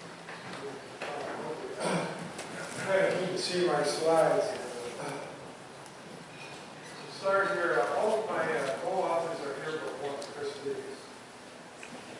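A man speaks through loudspeakers in a large echoing hall.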